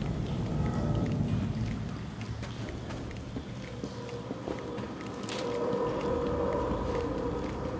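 Heavy footsteps clank on a metal floor.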